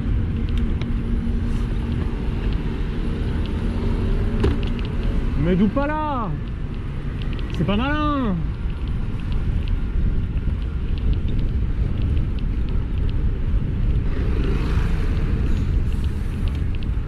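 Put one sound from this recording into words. City traffic hums nearby.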